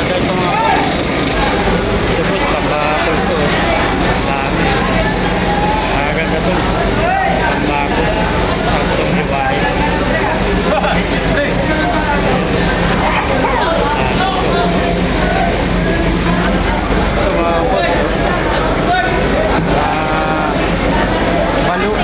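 Many men and women chatter at once all around, busy and loud.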